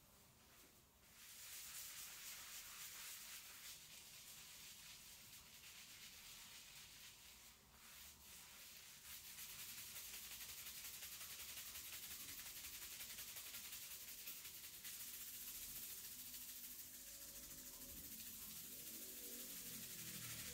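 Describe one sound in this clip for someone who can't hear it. Fingers scrub soapy hair with a soft, wet, crackling sound.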